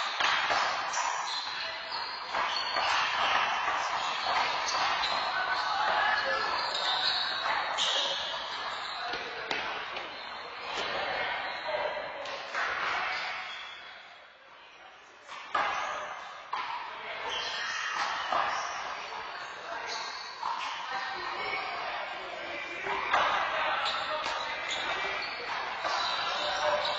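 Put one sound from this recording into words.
A rubber ball smacks hard against walls, echoing through a hard-walled court.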